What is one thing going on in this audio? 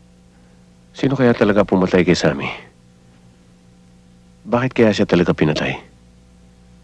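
A man speaks calmly and seriously nearby.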